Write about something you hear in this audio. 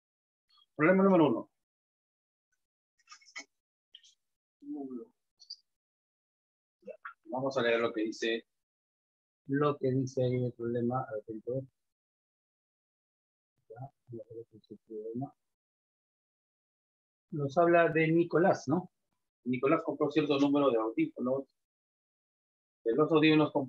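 A middle-aged man speaks calmly close by, pausing often.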